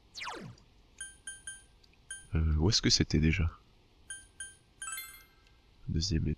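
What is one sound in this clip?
Short electronic beeps chime as a menu selection moves.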